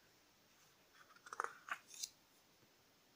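Paper pages rustle as a book's page is turned.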